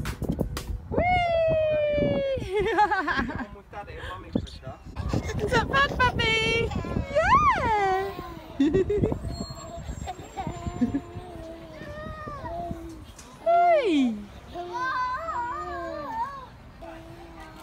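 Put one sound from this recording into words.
A young child laughs and squeals with delight close by.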